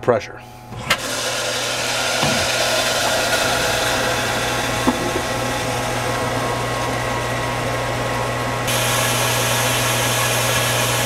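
A pump motor starts and runs with a steady whirring hum.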